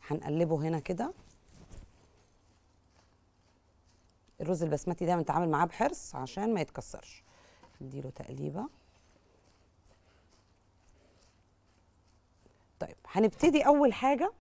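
A young woman talks calmly into a microphone, in short bursts.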